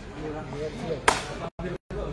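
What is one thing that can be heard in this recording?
A player kicks a sepak takraw ball with a sharp thud.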